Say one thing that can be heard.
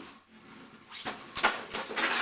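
Spinning tops clash with sharp clicks.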